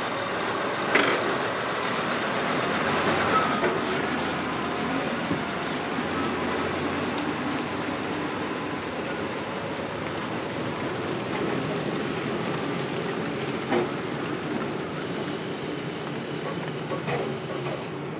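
Metal parts of the truck rattle and clank.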